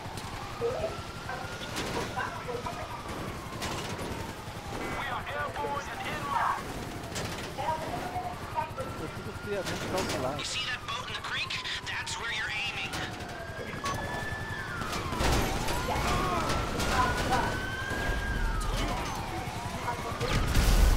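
A truck body bangs and rattles over bumps.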